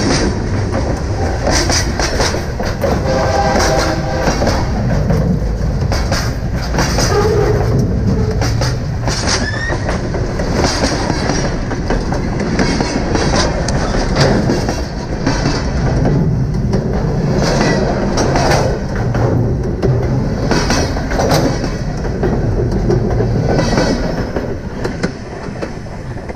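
A freight train rumbles loudly overhead, close by.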